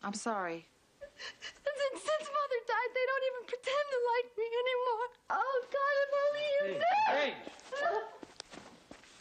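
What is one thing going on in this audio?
A young woman sobs and cries out in distress, close by.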